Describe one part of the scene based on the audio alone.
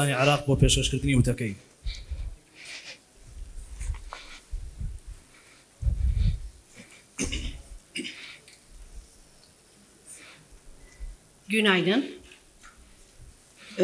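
A man talks in a room full of people.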